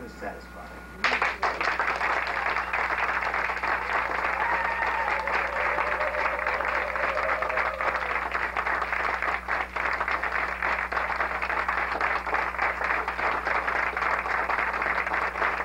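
A crowd claps hands rapidly and steadily.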